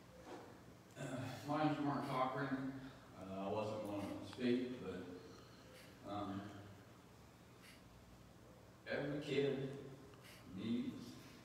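A man speaks into a microphone in an echoing hall.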